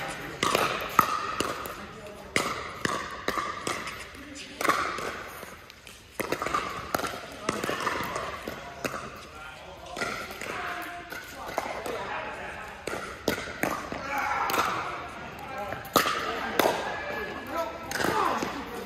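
Paddles sharply pop against a plastic ball in a quick rally, echoing in a large hall.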